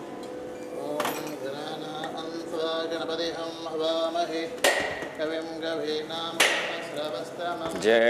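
A man chants into a microphone in a reverberant hall.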